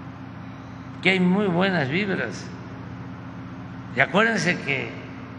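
An elderly man speaks calmly into a microphone in a large, echoing hall.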